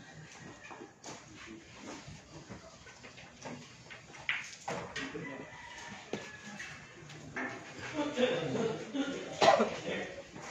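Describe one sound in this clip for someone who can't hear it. Billiard balls clack together on a pool table.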